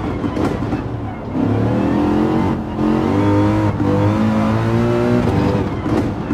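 A racing car engine roars, revving up through the gears.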